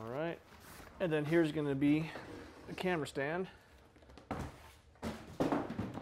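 A large bag thumps and rustles as it is lifted out.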